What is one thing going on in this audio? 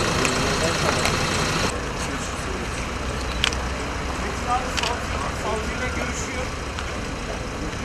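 Several men talk among themselves in a crowd outdoors.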